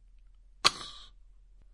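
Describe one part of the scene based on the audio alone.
A wooden clapper strikes a table once with a sharp crack.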